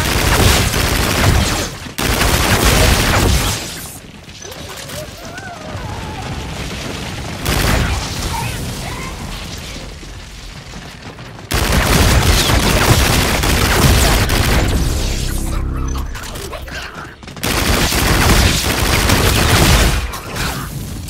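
A gun fires in rapid, loud bursts.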